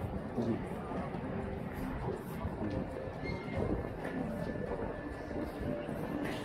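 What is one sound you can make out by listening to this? Footsteps tap on wooden boards nearby.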